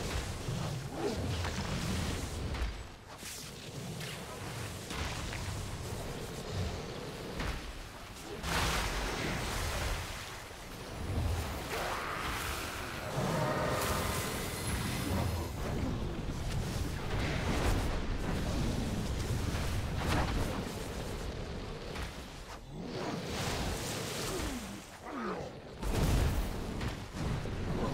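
Spell effects crackle and boom in a busy fight.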